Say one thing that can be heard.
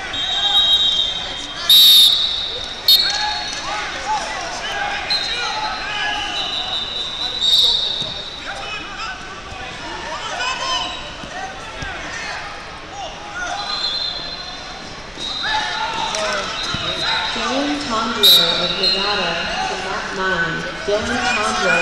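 A crowd of spectators chatters and calls out throughout a large echoing gym.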